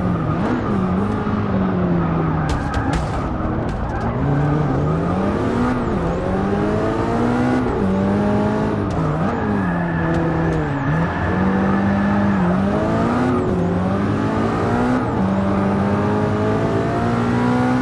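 A race car engine roars, rising and falling in pitch as it shifts gears.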